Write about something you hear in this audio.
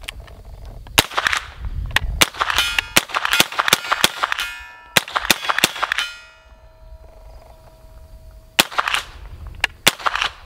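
A rifle fires rapid shots outdoors, each crack echoing briefly.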